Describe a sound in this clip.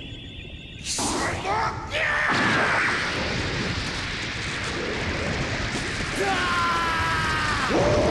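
An energy blast crackles and roars.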